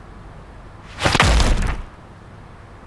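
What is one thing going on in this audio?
A heavy door bursts open with a loud bang and rattle.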